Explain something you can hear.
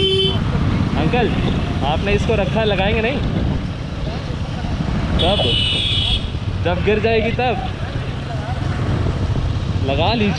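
A middle-aged man talks loudly over the engine and wind.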